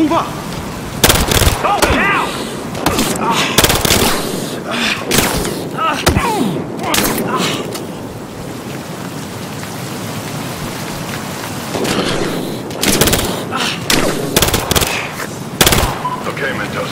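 Gunshots fire in rapid bursts, close by.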